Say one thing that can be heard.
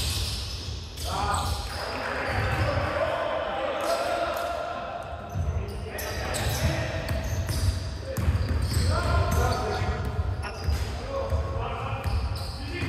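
Young men shout to each other in an echoing gym.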